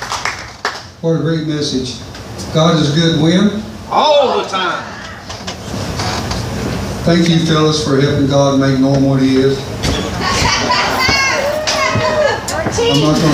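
An elderly man speaks with animation into a microphone, heard over loudspeakers.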